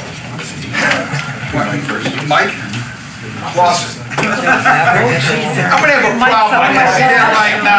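A man laughs nearby.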